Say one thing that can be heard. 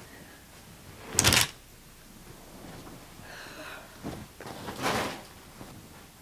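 Clothes rustle as they are shaken out and tossed down.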